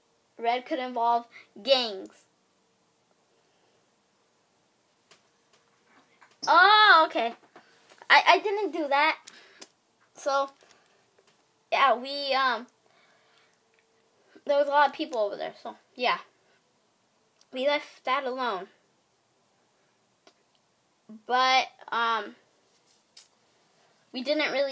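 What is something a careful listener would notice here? A boy talks close by with animation, in short bursts.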